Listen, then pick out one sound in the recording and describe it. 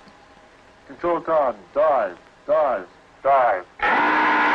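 A man speaks briskly into a telephone handset.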